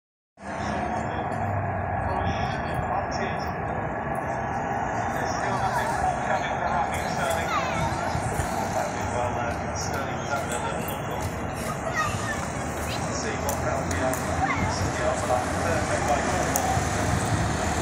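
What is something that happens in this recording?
A crowd of people murmurs and chatters outdoors at a distance.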